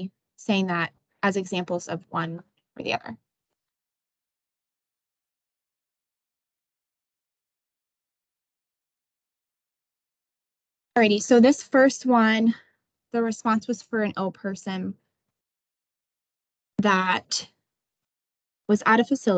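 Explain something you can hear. A young woman speaks calmly through a microphone on an online call, with pauses.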